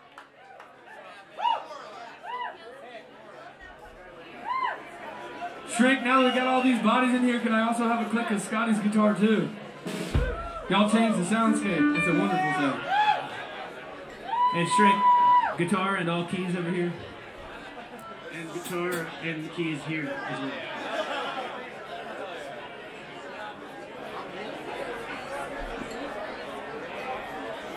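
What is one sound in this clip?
Electric guitars play loose notes.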